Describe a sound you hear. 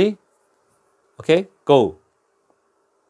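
A man speaks close to a microphone in short, lively bursts.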